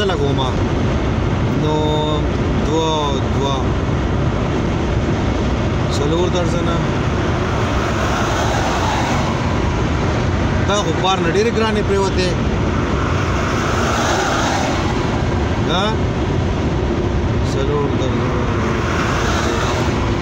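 A car drives with a steady low road rumble heard from inside.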